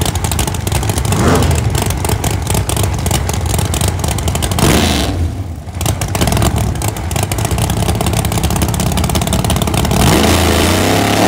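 A drag racing engine revs up sharply in short bursts.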